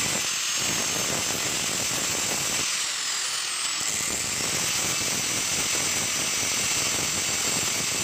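An angle grinder grinds harshly against metal.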